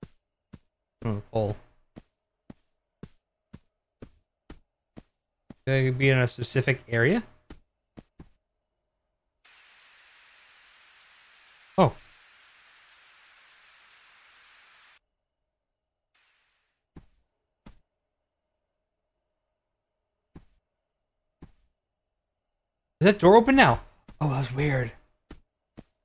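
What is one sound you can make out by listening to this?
A man speaks into a close microphone in short, calm bursts.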